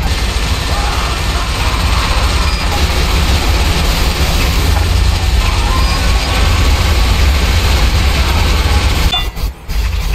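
A heavy machine gun fires in a rapid, loud, continuous roar.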